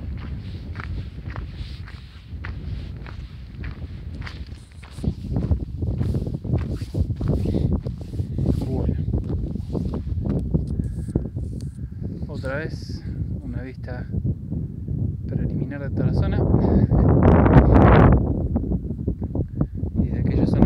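Strong wind blows outdoors, buffeting and rumbling against the microphone.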